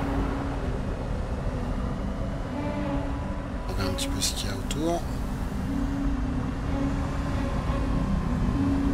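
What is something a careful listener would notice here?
Water rumbles low and steady all around, as if heard underwater.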